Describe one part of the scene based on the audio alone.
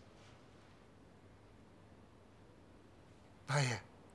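Bedding rustles softly as a person moves in bed.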